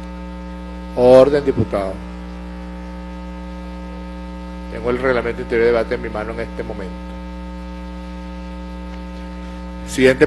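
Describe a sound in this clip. A middle-aged man speaks calmly into a microphone, in short phrases.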